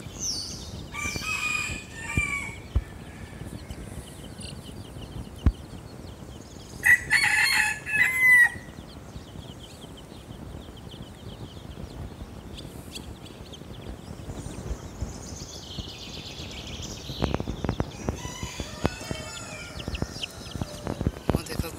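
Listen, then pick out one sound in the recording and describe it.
Chicks peep in high, rapid chirps.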